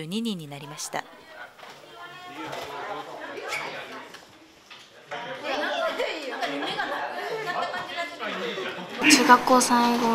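Many teenagers chatter together in a lively room.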